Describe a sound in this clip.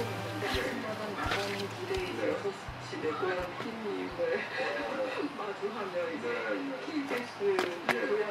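Rubber boots scuff and thump on a hard floor.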